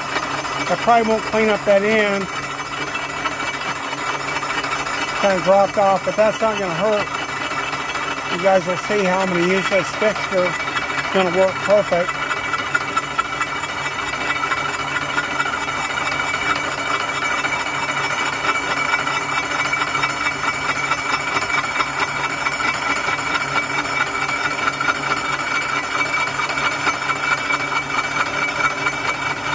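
A milling cutter whirs steadily as it cuts through metal.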